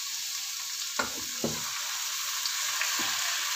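Pieces of raw meat drop into a metal pot with soft thuds.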